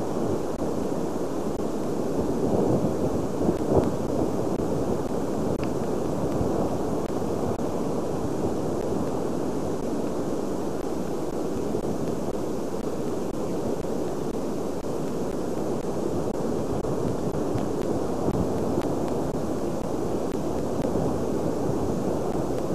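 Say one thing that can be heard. Wind blusters steadily outdoors.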